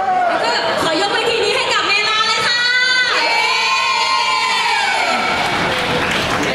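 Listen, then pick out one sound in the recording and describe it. Young women sing a pop song together over loudspeakers.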